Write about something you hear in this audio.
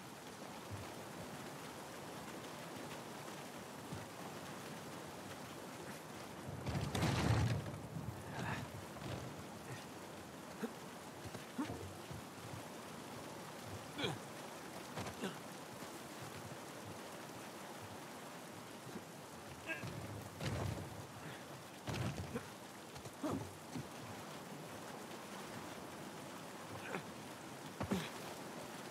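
Footsteps crunch on grass and stone.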